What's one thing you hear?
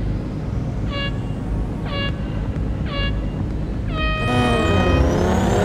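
Countdown beeps sound three times, then a longer higher beep.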